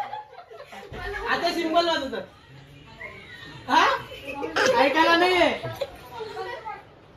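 Young people laugh loudly together.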